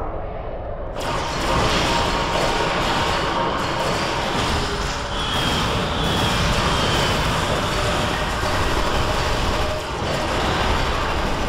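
Energy weapons fire and crackle in a fierce battle.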